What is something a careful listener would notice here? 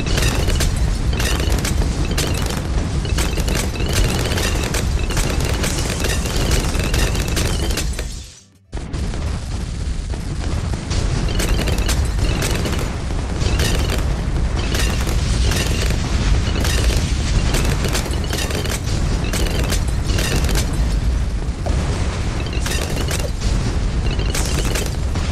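Game explosions and shots pop and crackle rapidly.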